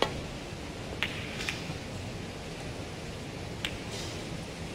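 Snooker balls knock against each other and the cushions.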